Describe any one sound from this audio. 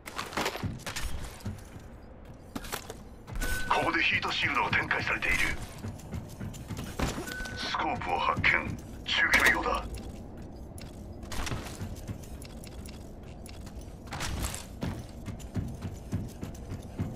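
Quick footsteps patter across a metal floor.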